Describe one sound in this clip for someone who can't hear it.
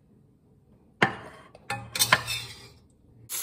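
A glass bowl clinks down onto a hard counter.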